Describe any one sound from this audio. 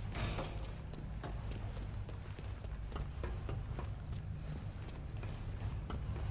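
Footsteps run quickly across a hard floor and up metal stairs.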